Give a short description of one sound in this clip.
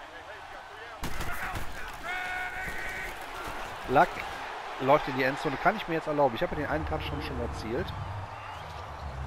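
A stadium crowd cheers and roars loudly.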